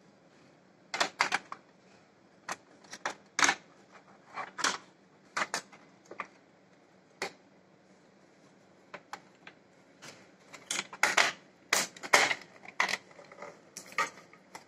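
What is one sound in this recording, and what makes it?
Plastic parts knock and clatter.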